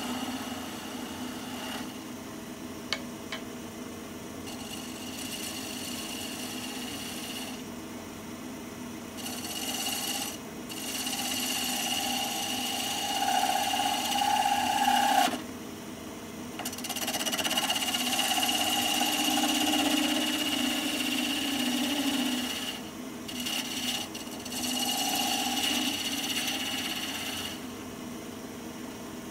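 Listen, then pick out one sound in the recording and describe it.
A lathe spins with a steady hum.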